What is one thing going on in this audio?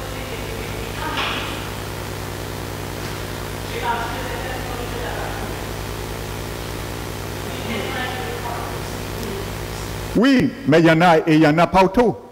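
A middle-aged man speaks earnestly through a headset microphone.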